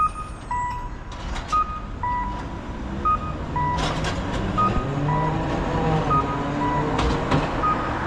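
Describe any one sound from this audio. A tram rolls past along the street.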